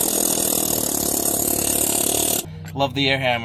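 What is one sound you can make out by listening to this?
An impact wrench rattles loudly.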